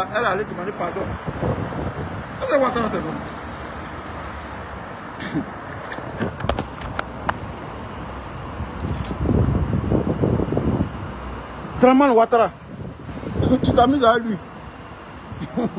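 A middle-aged man speaks with emotion, close to a phone's microphone.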